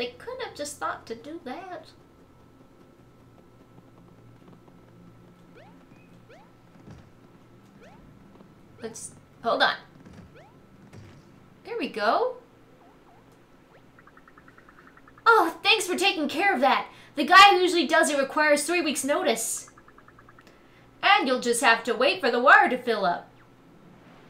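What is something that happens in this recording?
A young woman talks and laughs with animation close to a microphone.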